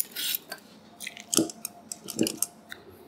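Cut potato sticks shift against a metal bowl.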